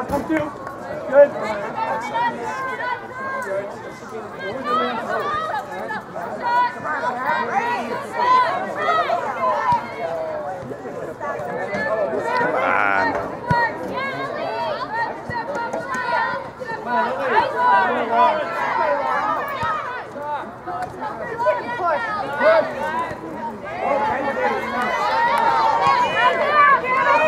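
Spectators talk and cheer outdoors, some distance away.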